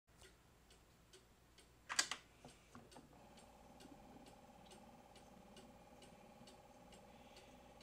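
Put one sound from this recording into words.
A spinning record crackles and ticks with a steady, rhythmic click on each turn.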